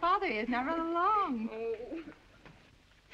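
A young girl speaks brightly in a high, lilting voice.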